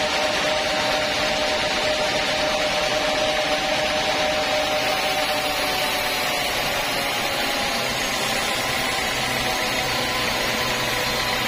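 A sawmill band saw cuts lengthwise through a teak log.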